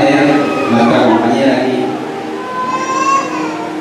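A young man speaks through a microphone in an echoing hall.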